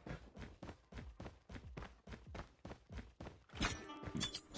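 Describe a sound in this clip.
Rapid gunfire rattles from a game.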